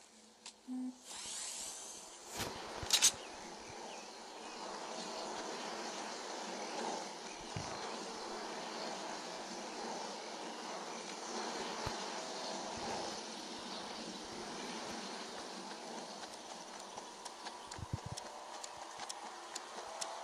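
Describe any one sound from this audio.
Footsteps run across grass.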